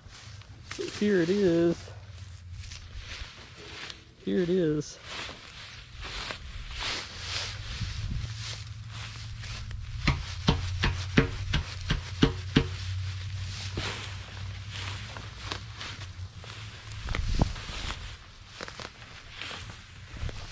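Footsteps swish and crunch through tall dry grass.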